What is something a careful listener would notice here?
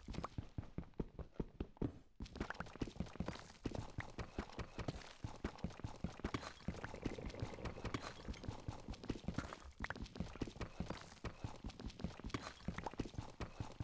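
A pickaxe chips at stone in quick, repeated taps.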